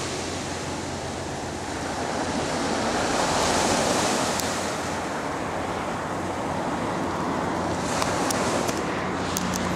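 Waves wash gently onto a pebble shore.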